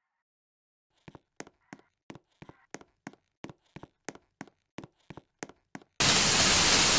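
Footsteps tap quickly on the ground.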